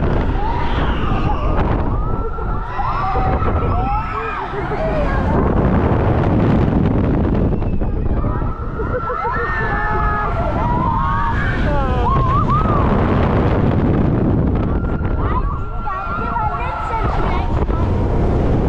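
A crowd of young riders scream and shriek with excitement.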